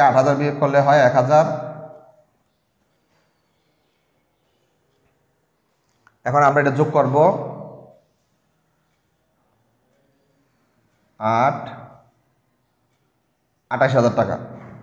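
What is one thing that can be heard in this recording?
A man speaks clearly and calmly in short bursts, close by, with long pauses between them.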